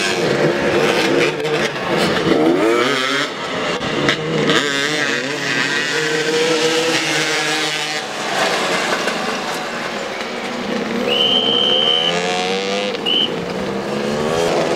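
Motorcycle engines rev and whine up and down in pitch outdoors.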